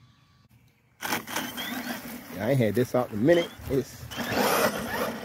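A toy truck's electric motor whines as the truck drives off.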